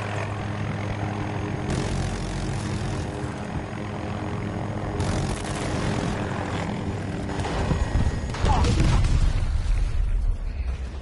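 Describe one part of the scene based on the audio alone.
A helicopter's rotor and engine roar loudly and steadily.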